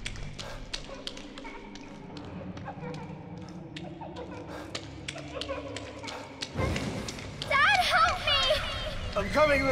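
Water laps and splashes gently.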